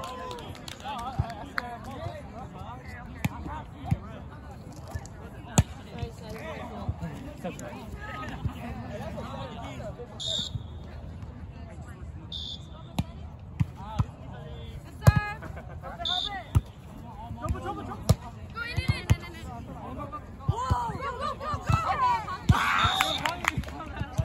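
Young men and women chatter and call out across an open outdoor field.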